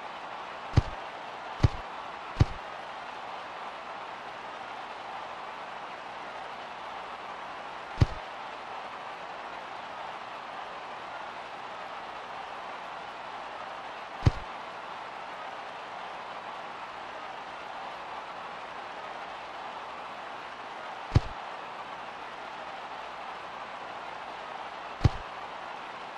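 A game menu clicks sharply, now and then.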